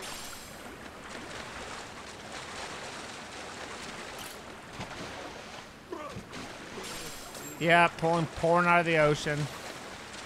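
Water splashes as a swimmer paddles.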